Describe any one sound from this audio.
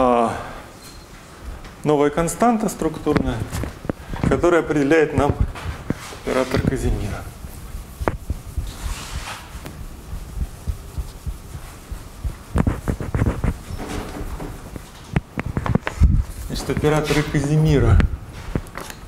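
A young man speaks calmly, as if lecturing.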